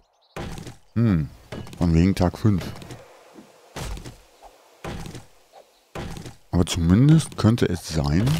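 An axe chops into a tree trunk with dull knocks.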